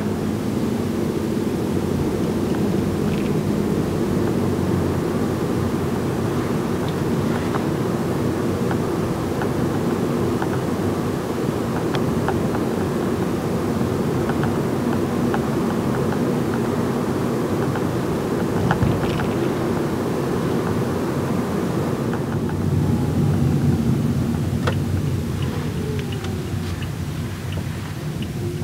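A car's engine hums steadily from inside as it drives along a road.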